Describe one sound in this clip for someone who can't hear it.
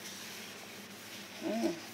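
A sponge scrubs a hard surface.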